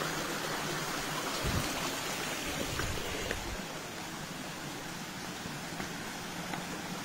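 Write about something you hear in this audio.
Water trickles gently in a shallow stream.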